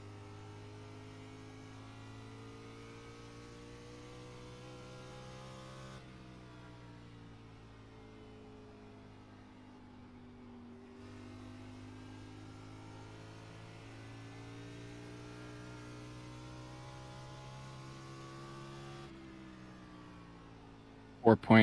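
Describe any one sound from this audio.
A racing car engine roars steadily, its pitch slowly rising and falling.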